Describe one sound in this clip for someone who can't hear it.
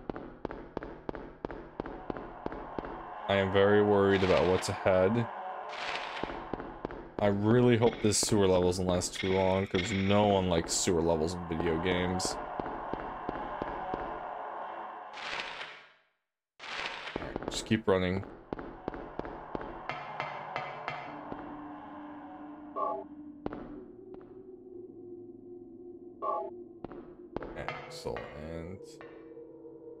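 Footsteps echo steadily on a hard floor.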